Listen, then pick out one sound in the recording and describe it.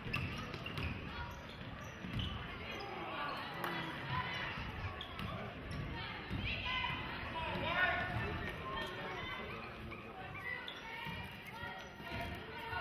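A crowd of spectators chatters and cheers.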